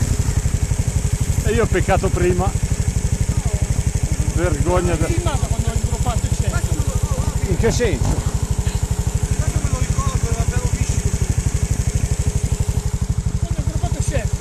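A trials motorcycle engine runs.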